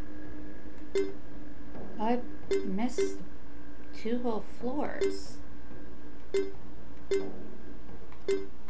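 Short electronic menu blips sound as a cursor moves between options.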